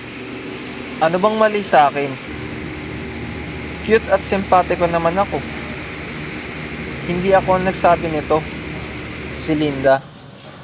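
A teenage boy speaks calmly and close by, in short bursts.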